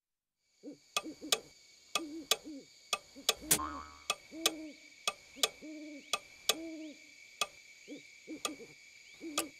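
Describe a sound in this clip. A clock ticks steadily and loudly.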